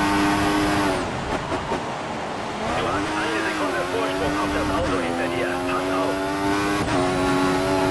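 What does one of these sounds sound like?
A racing car engine note falls away under hard braking, then climbs again.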